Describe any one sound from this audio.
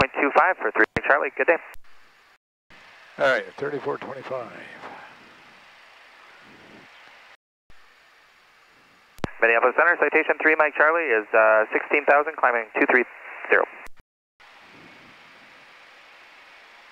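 An aircraft engine drones steadily.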